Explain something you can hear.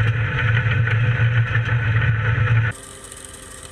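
A machine engine rumbles loudly up close.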